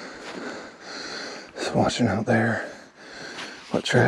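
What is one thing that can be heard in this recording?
Dry leaves rustle as a hand brushes them.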